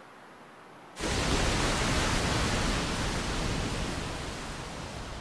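Water rushes and churns in a loud, steady roar.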